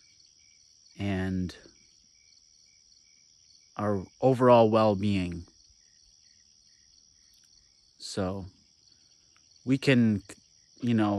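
A young man speaks calmly in short bursts, close to the microphone.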